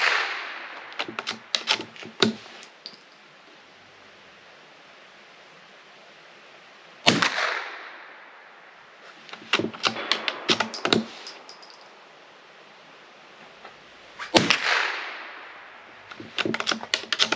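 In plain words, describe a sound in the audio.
A rifle bolt clacks as it is worked back and forth.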